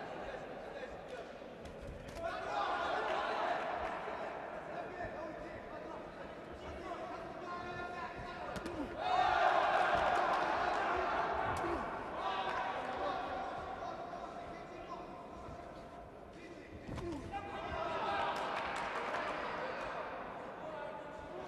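A crowd cheers and shouts in a large arena, swelling in waves.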